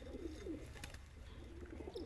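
Pigeons flap their wings.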